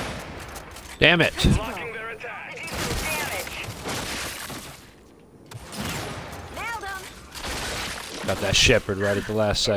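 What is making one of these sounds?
Gunshots crack from a sniper rifle.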